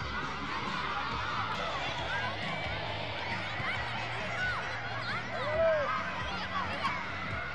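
Children shout and call out in the distance outdoors.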